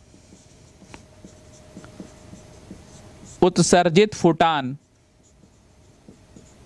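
A marker scratches softly across a writing surface.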